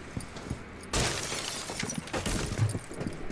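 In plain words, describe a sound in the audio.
Wooden boards smash and splinter loudly.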